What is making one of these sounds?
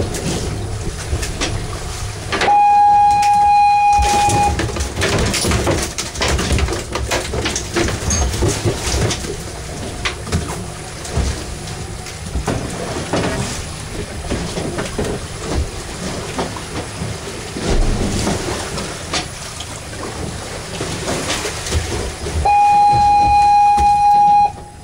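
Wind blows across open water.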